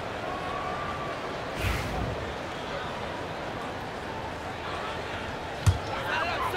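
A large arena crowd murmurs steadily.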